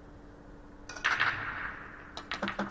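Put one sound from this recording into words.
A cue strikes a ball.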